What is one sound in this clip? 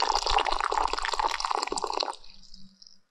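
Water pours into a metal pot and splashes.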